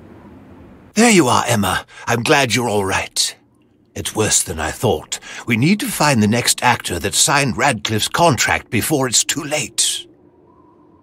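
A man speaks clearly and urgently through a microphone.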